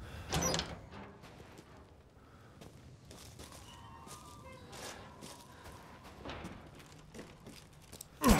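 Footsteps crunch on the ground.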